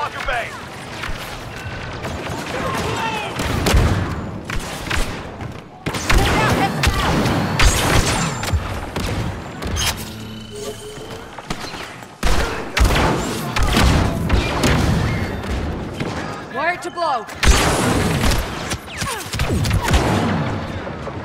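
Blaster rifles fire rapid bursts of laser shots.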